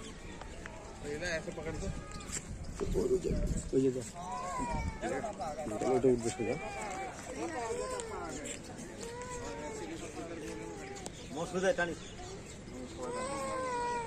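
Several people talk in the distance outdoors.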